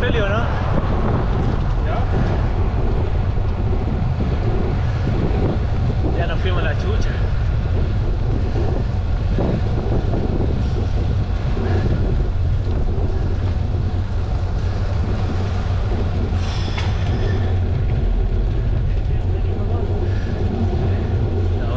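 Bicycle tyres hum on rough tarmac.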